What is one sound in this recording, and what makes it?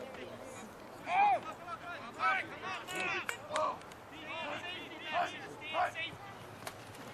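Men shout from the sideline outdoors.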